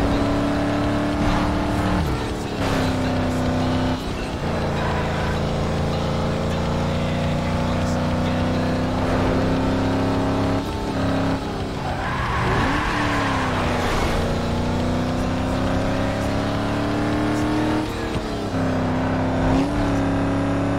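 A racing car engine roars at high speed, dropping in pitch at each gear change and climbing again.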